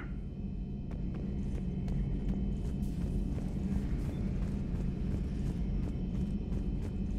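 Footsteps clang quickly on a metal floor.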